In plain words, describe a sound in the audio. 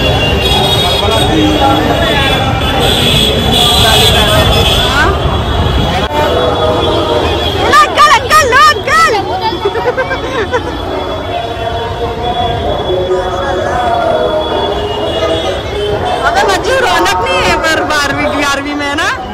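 A crowd of people talk and shout nearby outdoors.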